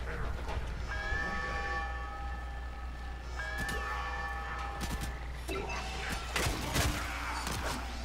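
A blade swishes through the air.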